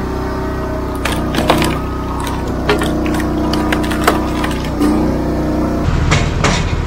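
Wood splits with sharp cracks.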